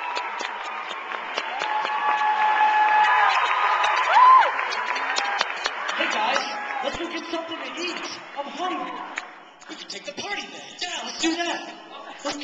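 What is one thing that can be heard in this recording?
A young man beatboxes into a microphone.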